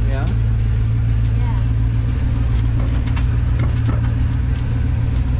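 An old engine rumbles loudly and steadily inside a moving vehicle.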